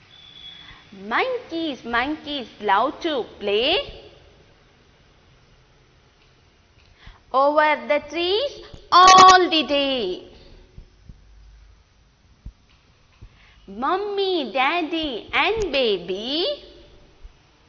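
A young woman sings a short rhyme in a clear, lively voice, in bursts with pauses between.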